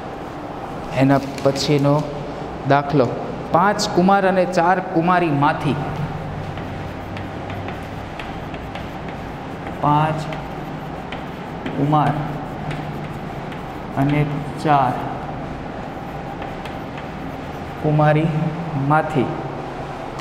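A man speaks calmly in short phrases through a close microphone.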